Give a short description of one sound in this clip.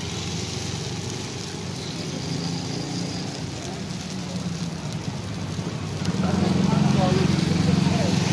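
Eggs sizzle and crackle in hot oil.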